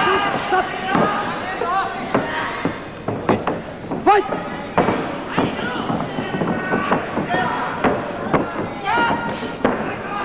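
Wrestlers' bodies and feet thud sharply on a ring mat.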